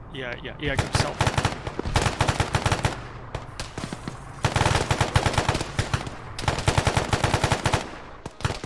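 Rifles fire in rapid bursts close by.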